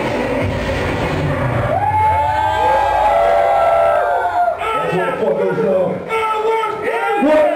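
A man sings loudly into a microphone over a loudspeaker system.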